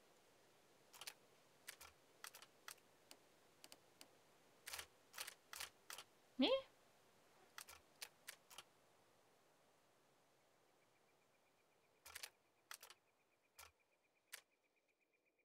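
Metal parts of a puzzle box click as they turn.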